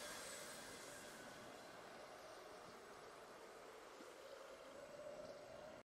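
Triumphant game music plays.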